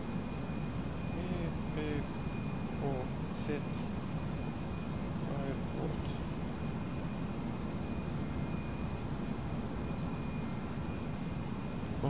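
A jet airliner's engines drone steadily.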